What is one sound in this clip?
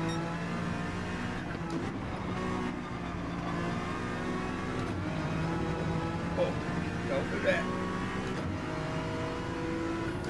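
A racing car engine roars steadily, shifting through the gears.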